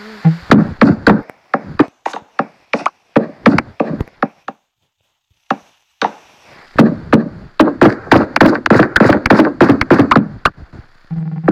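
Wooden blocks break apart with quick, repeated crunching knocks.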